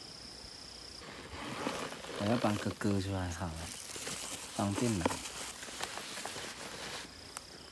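Gloved hands tap and rustle against a plastic box.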